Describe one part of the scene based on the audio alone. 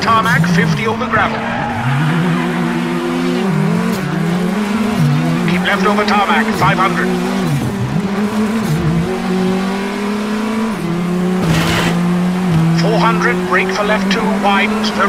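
A racing car engine roars, its pitch rising and dropping with each gear change.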